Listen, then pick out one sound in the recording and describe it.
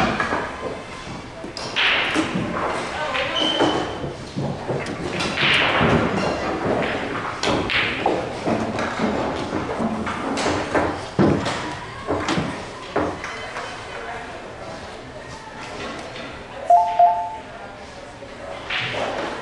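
Billiard balls clack together as they are gathered and racked.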